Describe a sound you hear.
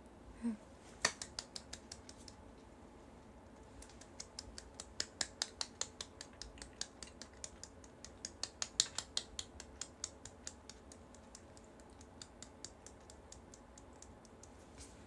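Hands tap and rub together in quick, soft clicks.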